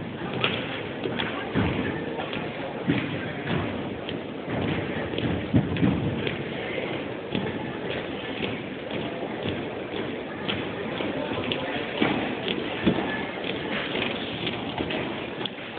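Boots stamp on a wooden floor in step.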